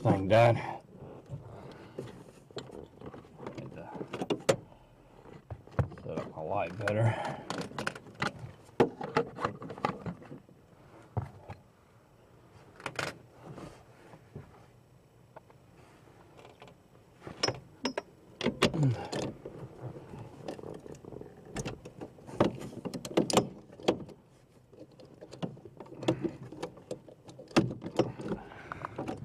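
Metal contacts in a mechanism click and snap repeatedly.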